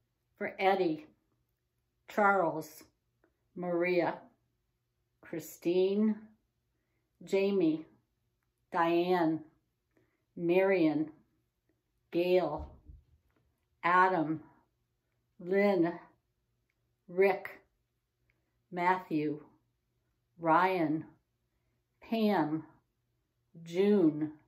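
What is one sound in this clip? A middle-aged woman speaks slowly and calmly into a microphone close by, in short phrases with pauses.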